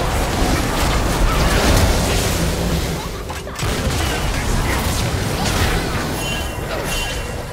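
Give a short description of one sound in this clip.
Weapons clash and strike in quick succession.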